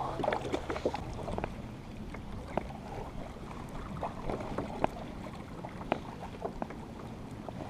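A paddle splashes and drips in water.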